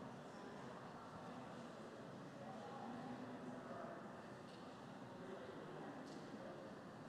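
A woman speaks calmly through a microphone, echoing in a large hall.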